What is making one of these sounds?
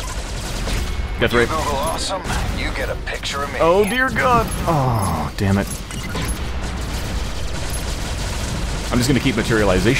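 Explosions burst in a video game.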